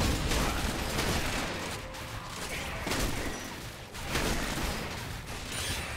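Game spells whoosh and crackle in a fight.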